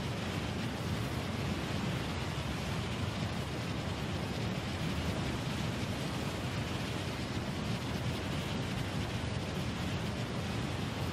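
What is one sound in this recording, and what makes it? Wind rushes loudly and steadily past during a fast glide through the air.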